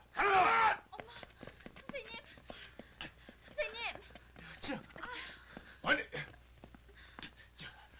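Footsteps hurry down stairs.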